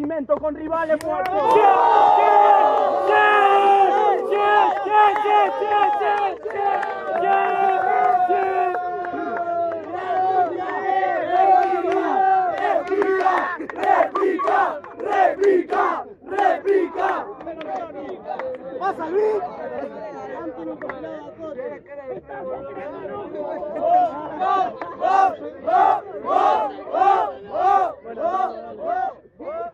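A crowd of young men talks and shouts close by.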